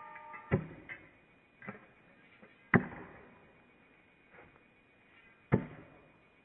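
A thrown blade thuds sharply into a wooden log.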